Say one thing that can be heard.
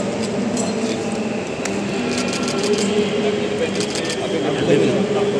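A crowd of men talks and calls out nearby, outdoors.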